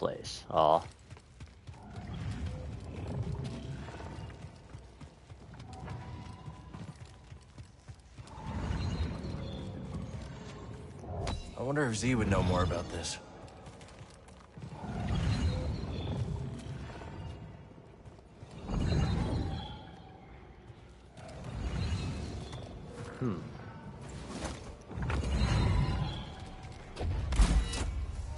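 Quick footsteps run across a stone floor.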